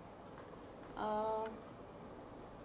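A second woman speaks briefly over an online call.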